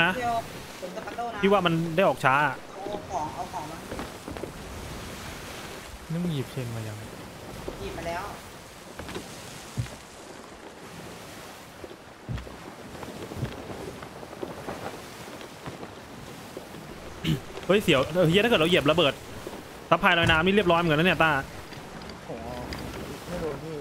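Rough sea waves rush and crash.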